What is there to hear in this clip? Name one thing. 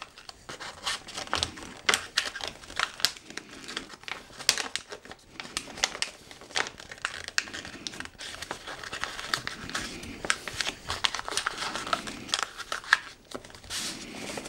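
Wrapping paper crinkles and rustles under hands, close by.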